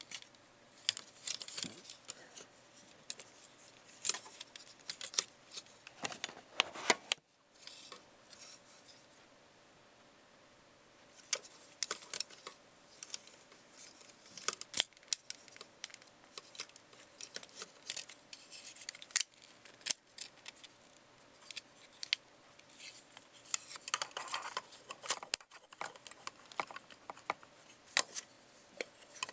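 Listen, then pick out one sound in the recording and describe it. Plastic toy parts click and snap as hands twist them.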